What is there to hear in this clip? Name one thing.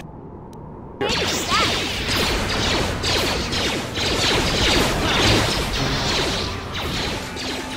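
Lightsabers hum and clash in a loud fight.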